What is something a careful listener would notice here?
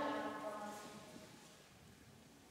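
A young girl speaks into a microphone.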